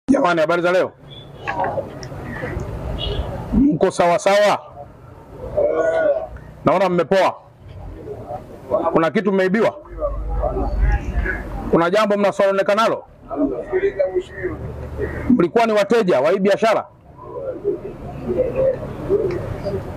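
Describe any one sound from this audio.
A man speaks forcefully through a megaphone outdoors.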